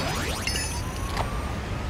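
A short rising whoosh and chime play as a game menu switches.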